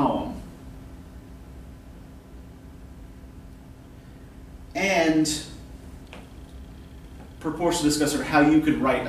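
A man speaks in short bursts with long pauses, in a room with a slight echo.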